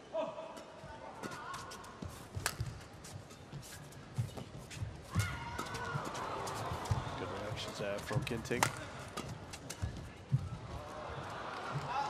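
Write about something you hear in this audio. Rackets smack a shuttlecock back and forth in a fast rally.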